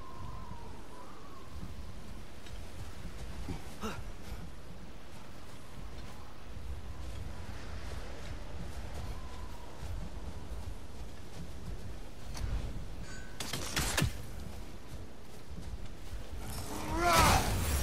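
Wind blows steadily in a low rumble.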